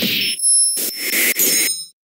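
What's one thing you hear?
Ice bursts and shatters with a sharp crash.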